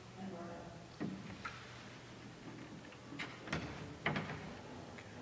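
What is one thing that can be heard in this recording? A piano's wooden lid and music rest knock and thump.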